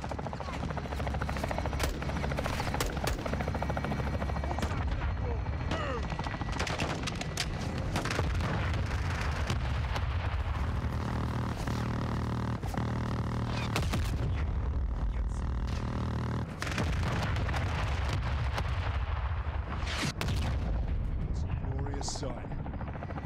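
Gunfire cracks and explosions rumble in a loud game battle.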